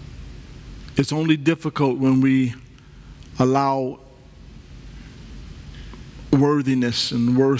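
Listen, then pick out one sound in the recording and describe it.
A man speaks with emphasis through a microphone, pausing between phrases.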